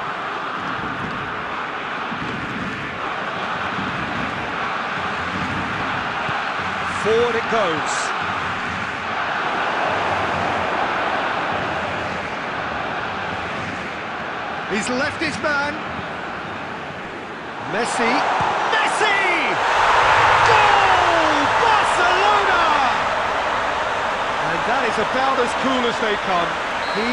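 A stadium crowd roars steadily.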